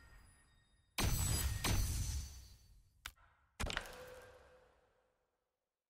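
Heavy whooshing game sound effects burst out and ring away.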